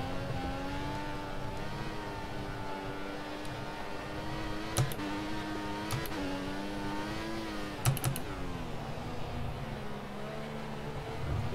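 A Formula One turbo V6 race car engine whines at high revs.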